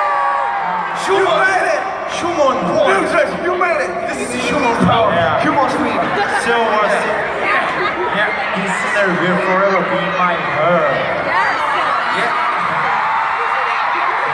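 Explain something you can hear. A crowd of young fans screams and cheers.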